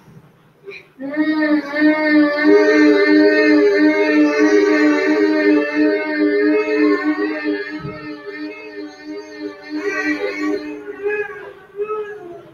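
A woman and girls hum a long, steady note together.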